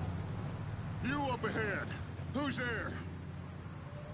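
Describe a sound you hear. A man shouts out loudly.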